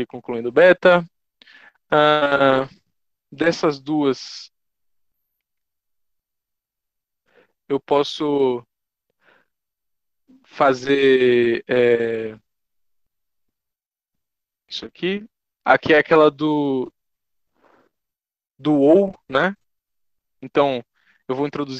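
A man explains calmly with pauses, heard through an online call microphone.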